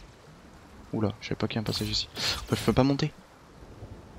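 A bright magical chime rings out.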